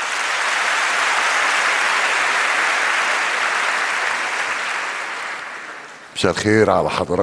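A large audience applauds in a big hall, then the applause fades.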